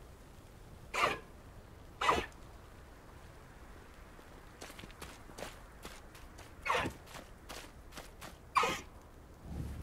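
Hooves thud slowly on a dirt path.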